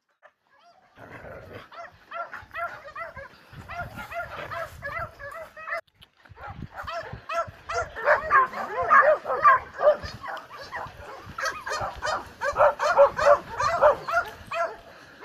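Several dogs bark and howl close by.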